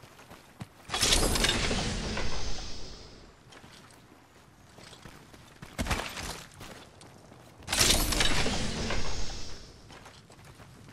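A metal crate opens with a loud mechanical hiss and clank.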